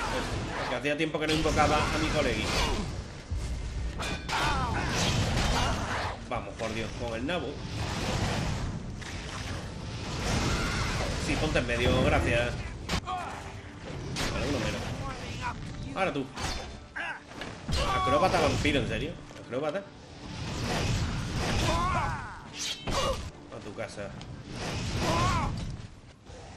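Fire spells burst and roar in quick blasts.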